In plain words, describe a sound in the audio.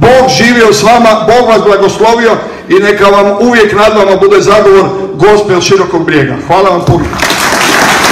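A middle-aged man speaks with passion through a microphone in a large hall.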